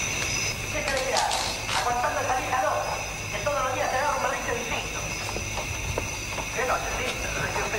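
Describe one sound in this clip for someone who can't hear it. A door creaks slowly open.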